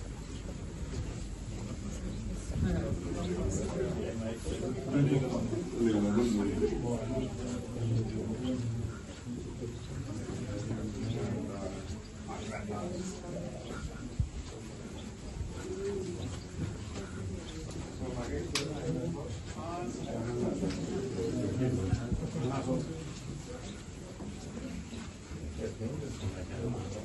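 A crowd of adults chatter close by.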